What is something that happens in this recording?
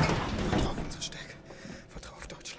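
A young man mutters quietly.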